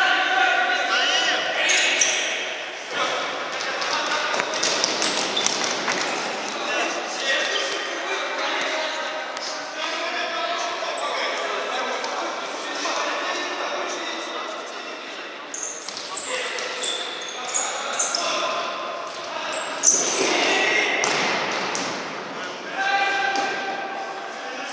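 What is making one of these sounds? Players' shoes squeak on a hard floor in a large echoing hall.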